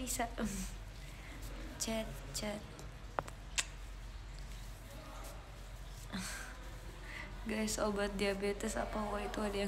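A young woman sniffles.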